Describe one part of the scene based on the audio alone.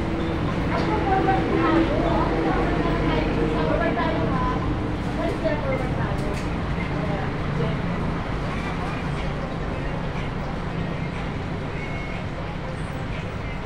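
Several women sing together.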